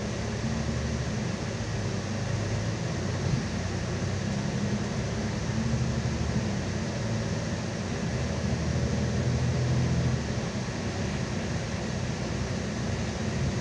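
Tyres crunch and hiss over snowy road.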